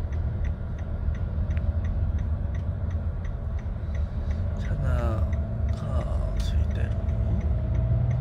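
A car engine hums low and steady with road rumble.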